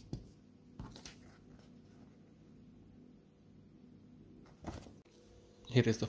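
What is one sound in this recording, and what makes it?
A sheet of paper rustles as it is picked up and set down.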